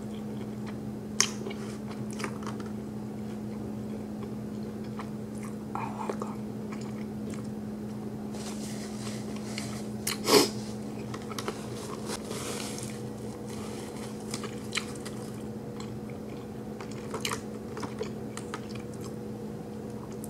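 A woman chews and smacks her lips softly close to a microphone.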